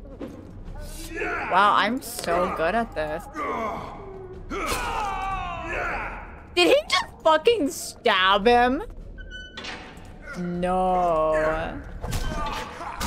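A young woman talks with animation close to a microphone, laughing and exclaiming.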